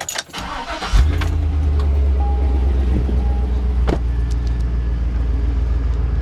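A motorcycle engine starts up and runs with a low, steady rumble.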